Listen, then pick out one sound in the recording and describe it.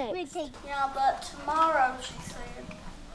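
A young boy talks in a high voice close by.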